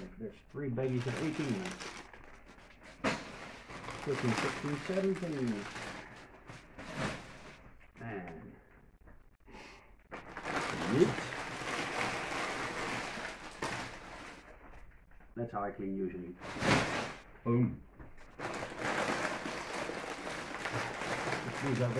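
Plastic bags of small plastic pieces rustle and crinkle as they are handled.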